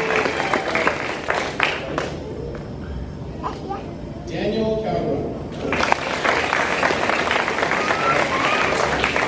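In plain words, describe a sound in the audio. A crowd in a large hall claps and cheers.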